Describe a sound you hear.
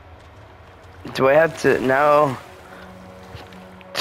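Water splashes softly as someone swims.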